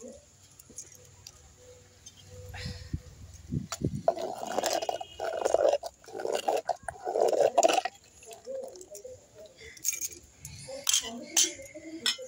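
Soup bubbles and simmers in a pot.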